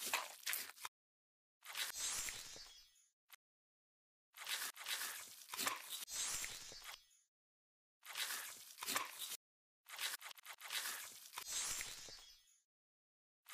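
A carving tool scrapes and buzzes through a pumpkin in short bursts.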